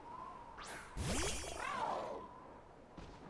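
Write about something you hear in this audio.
A creature lets out a rising cry.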